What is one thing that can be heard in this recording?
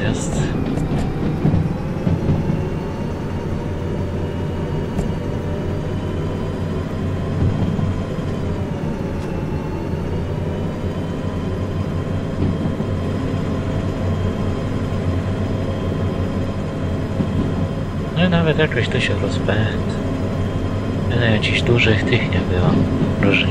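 A diesel locomotive engine drones steadily.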